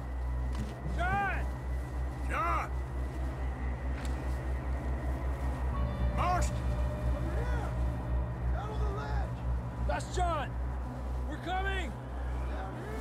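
Footsteps crunch quickly through deep snow.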